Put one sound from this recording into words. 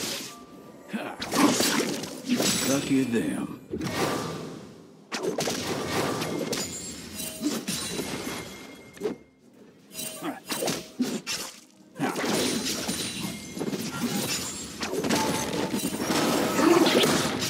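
Game spell effects whoosh and crackle in quick bursts during a fight.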